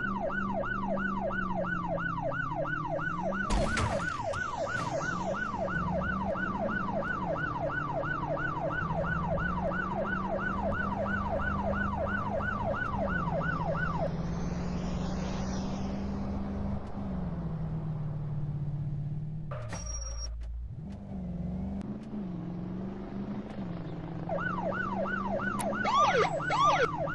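A car engine hums steadily, rising and falling with speed.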